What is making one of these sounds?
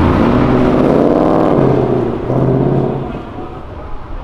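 A sports car engine revs loudly and rumbles as the car pulls away.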